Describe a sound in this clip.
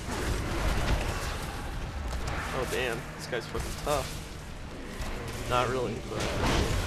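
Spells whoosh and crackle during a fight.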